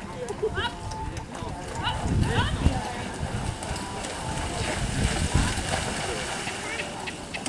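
Horses' hooves splash through shallow water.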